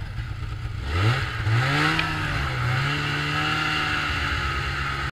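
A snowmobile engine revs up and the sled pulls away.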